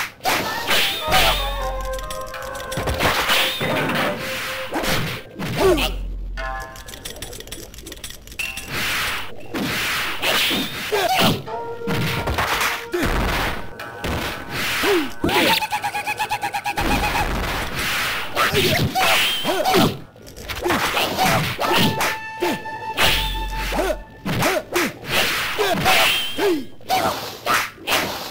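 Game fighting sound effects crack and whoosh as blows land.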